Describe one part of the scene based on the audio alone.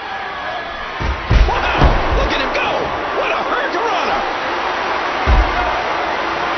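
Heavy thuds ring out as wrestlers slam onto the ring mat.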